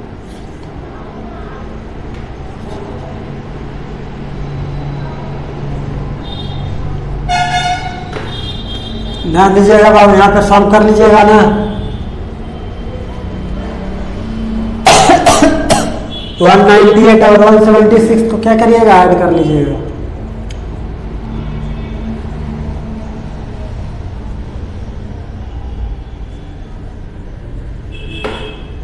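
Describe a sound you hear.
A marker squeaks and scratches on a whiteboard.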